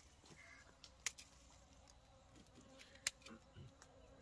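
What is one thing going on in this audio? Pruning shears snip through stems with sharp clicks.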